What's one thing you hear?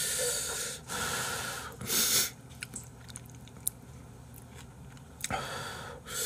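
A man loudly slurps noodles close to a microphone.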